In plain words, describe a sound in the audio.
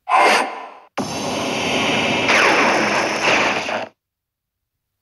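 A magical beam zaps and hums loudly.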